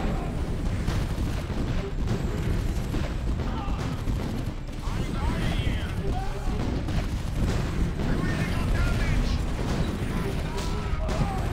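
A flamethrower roars.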